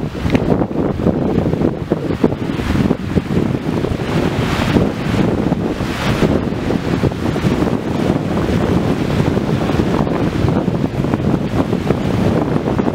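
Sea waves wash onto a shore in the distance.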